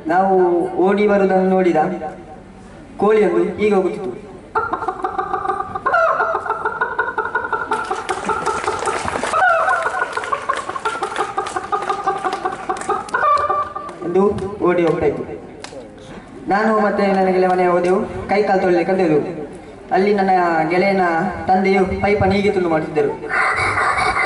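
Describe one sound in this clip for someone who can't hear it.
A young man sings through a microphone.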